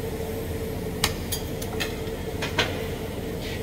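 Metal tools clink sharply a few times.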